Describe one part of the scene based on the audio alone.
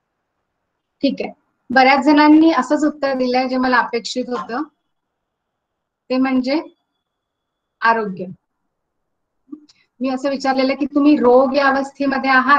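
A woman speaks calmly and close up, heard through an online call.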